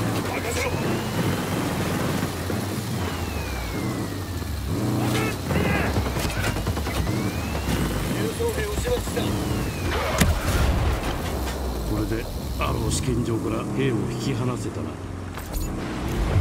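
An armoured vehicle's engine rumbles steadily as it drives.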